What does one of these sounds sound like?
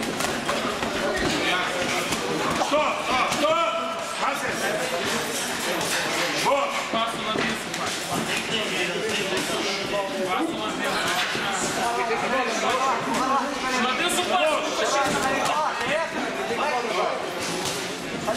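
Boxing gloves thump against each other and against bodies in a large echoing hall.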